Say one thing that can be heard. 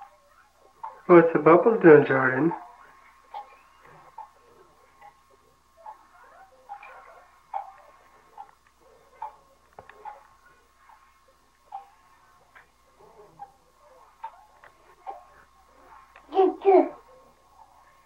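A baby babbles and squeals loudly up close.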